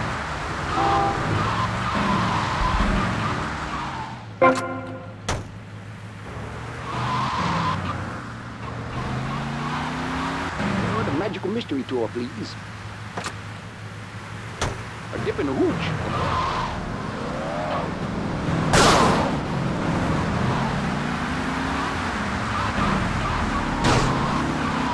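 A car engine hums and revs as it drives along.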